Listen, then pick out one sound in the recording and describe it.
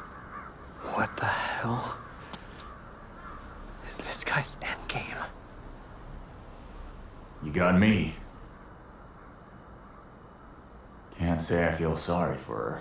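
A young man speaks quietly and tensely, close by.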